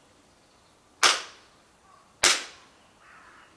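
A man claps his hands twice, sharp and echoing.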